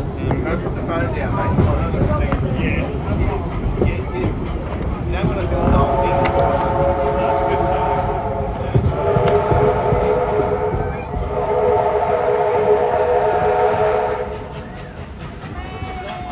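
Train wheels rumble and clatter over rails at speed.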